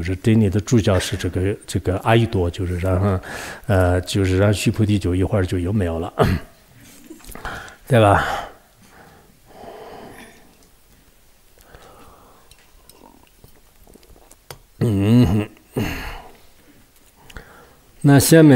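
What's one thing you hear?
An elderly man speaks calmly and warmly into a microphone.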